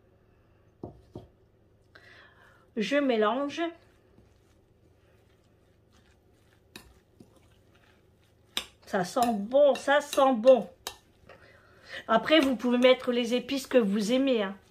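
A spoon stirs and scrapes through a moist mixture in a plastic bowl.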